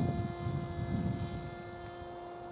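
Wind gusts against the microphone.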